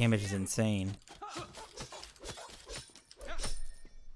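Magic blasts and sharp hits crackle in a fast fight.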